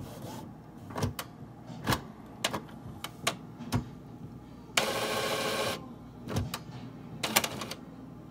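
A printer's mechanism clicks and knocks as it starts up.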